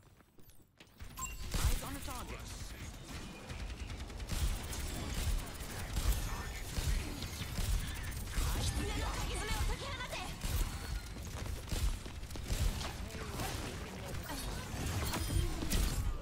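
Game explosions and ability effects crash and whoosh loudly.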